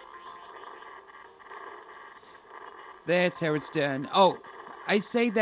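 Soft electronic game music plays.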